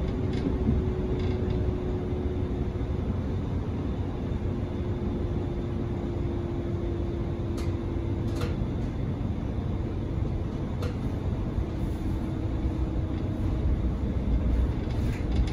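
A subway train rumbles and hums steadily along the track.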